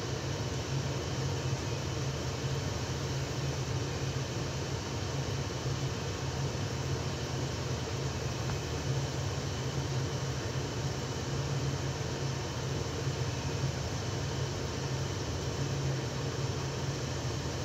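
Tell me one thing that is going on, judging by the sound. Food simmers and bubbles steadily in a covered pot.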